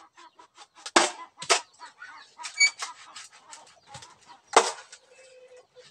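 A knife chops and scrapes at a bamboo pole with sharp knocks.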